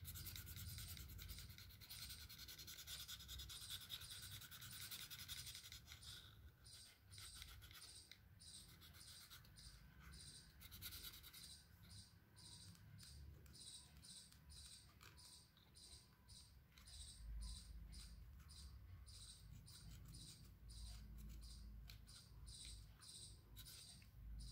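A felt-tip marker scratches and squeaks in quick strokes on paper.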